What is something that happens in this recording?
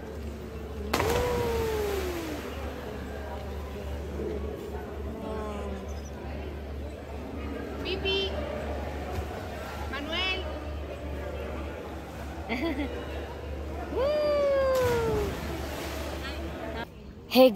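Water splashes loudly as a diver plunges in.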